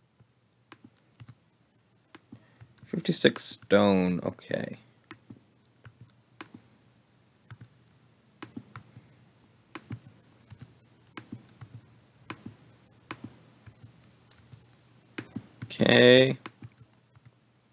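Short soft clicks sound as wooden walls are placed one after another.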